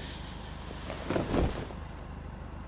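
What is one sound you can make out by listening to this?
A man murmurs briefly and close to a microphone.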